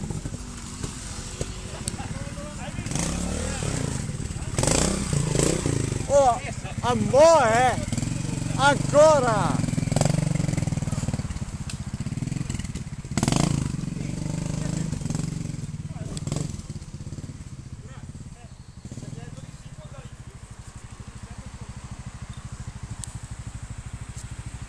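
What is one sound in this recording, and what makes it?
A motorcycle engine revs up and down nearby.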